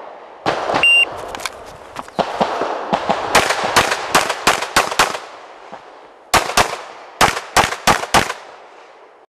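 A pistol fires rapid shots close by, each crack echoing outdoors.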